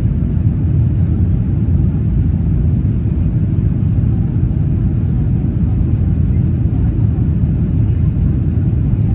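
A jet airliner's engines roar with a steady deep rumble inside the cabin.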